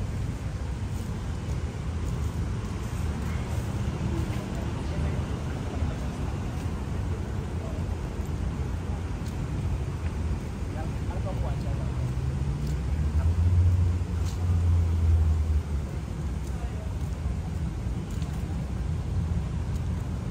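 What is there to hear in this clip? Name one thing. Leaves rustle softly in a light breeze outdoors.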